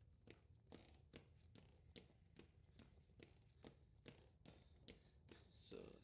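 Footsteps creak steadily across a wooden floor.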